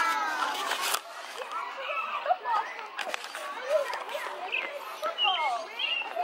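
Children chatter in a group at a distance.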